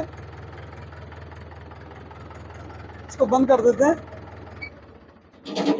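A diesel tractor engine idles with a low steady chug, then cuts off.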